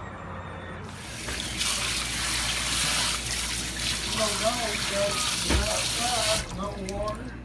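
Water from a tap splashes onto a bunch of beans.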